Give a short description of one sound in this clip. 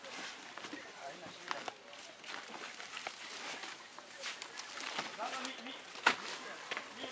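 Heavy sacks thump down onto the ground.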